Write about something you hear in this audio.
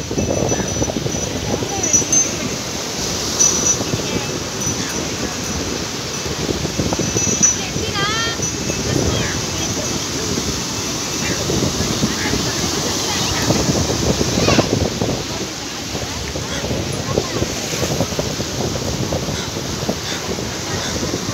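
Sea waves wash and break steadily onto a rocky shore.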